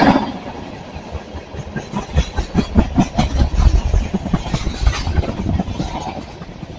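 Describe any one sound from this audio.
A freight train rumbles past close by, its wheels clattering rhythmically over the rail joints.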